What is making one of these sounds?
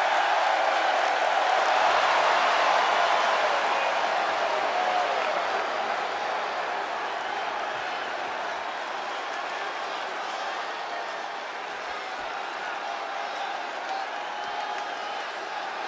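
A large crowd cheers and roars in an echoing arena, slowly growing quieter.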